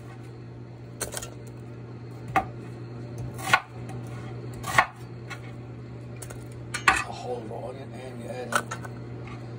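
Chunks of onion drop and thump into a metal pot.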